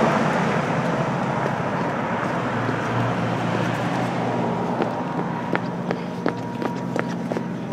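Traffic hums and rushes past on a nearby street.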